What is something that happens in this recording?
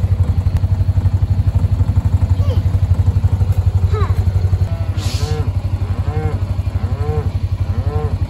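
A vehicle engine idles with a steady low throb.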